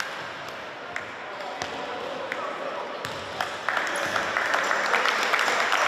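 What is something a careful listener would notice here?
A crowd of young spectators chatters and cheers in an echoing hall.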